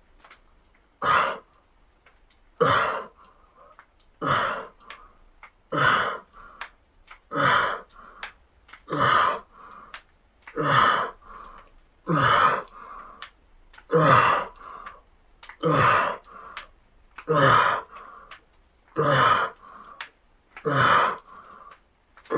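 A man breathes out hard and rhythmically with each repetition.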